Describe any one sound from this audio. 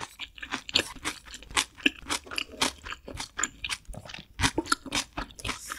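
Chopsticks and a spoon clink and scrape against a dish.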